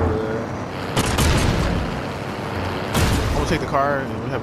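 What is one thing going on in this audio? A rifle fires several loud shots.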